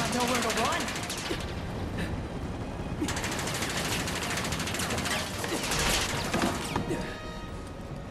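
Bullets ricochet off metal stairs with sharp pings.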